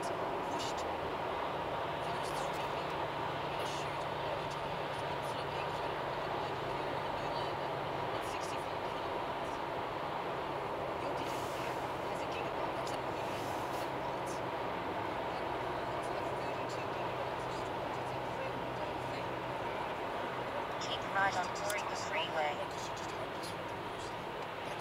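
A car's engine hums steadily inside the cabin while driving on a highway.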